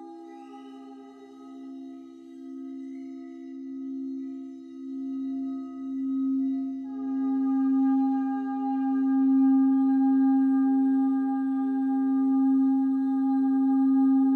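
A crystal singing bowl hums as a mallet is rubbed around its rim, its tone swelling.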